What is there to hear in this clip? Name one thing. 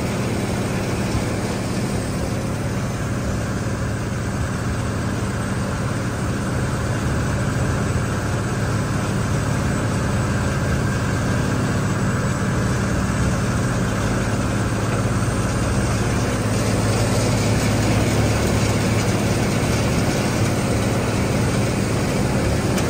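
Loose material pours and patters off a conveyor onto a heap.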